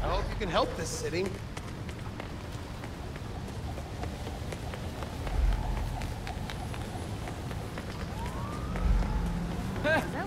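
Footsteps run quickly on wet pavement.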